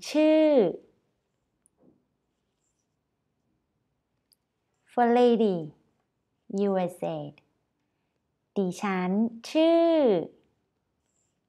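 A young woman speaks clearly and slowly into a close microphone, in short phrases with pauses.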